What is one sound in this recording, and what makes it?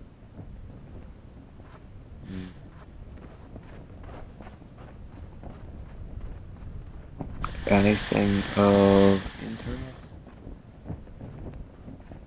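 Footsteps crunch softly on sand at a steady pace.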